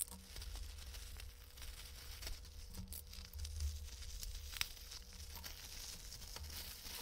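Plastic packaging rustles and crinkles as hands handle it.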